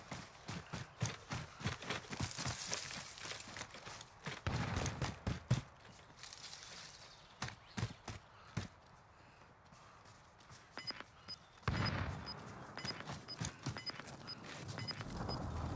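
Footsteps rustle quickly through dry grass and brush.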